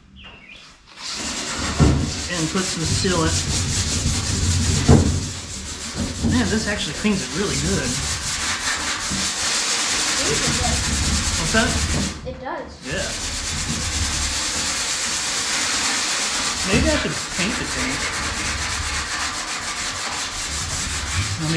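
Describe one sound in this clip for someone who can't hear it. A scouring pad scrubs back and forth over a metal surface.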